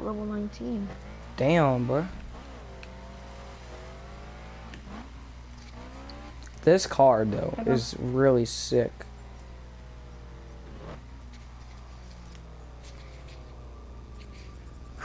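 A car engine revs up and down as it accelerates and shifts gears.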